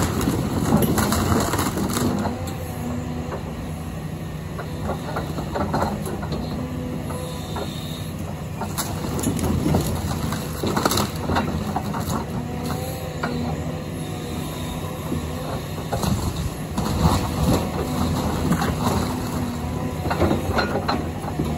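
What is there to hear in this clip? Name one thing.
Wood and debris crunch and crack as an excavator bucket digs into a rubble pile.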